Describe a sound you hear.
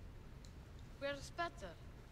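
A child asks a question in a high voice.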